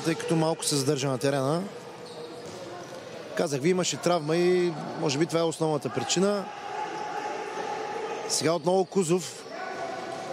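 A ball thuds as players kick it on a hard indoor court.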